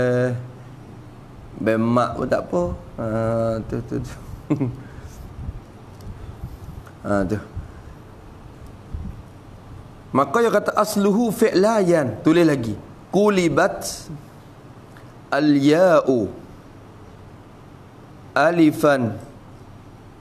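A man speaks calmly into a nearby microphone, with pauses between phrases.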